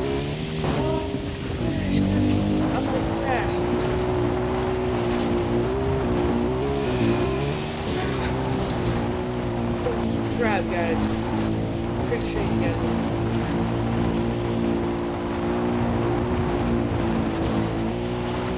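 A quad bike engine drones steadily as it drives along.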